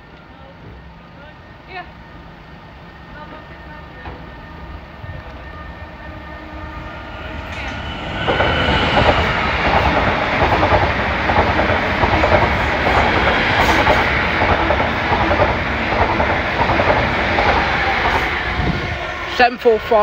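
A level crossing alarm rings steadily.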